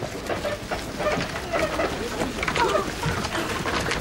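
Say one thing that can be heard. Cart wheels creak and rattle over snow.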